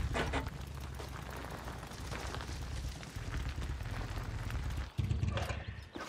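A motorcycle engine rumbles steadily close by, then cuts off.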